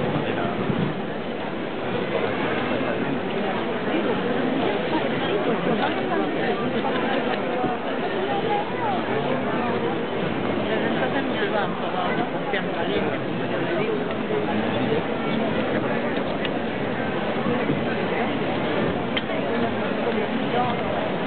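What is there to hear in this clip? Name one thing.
A large crowd murmurs and chatters all around outdoors.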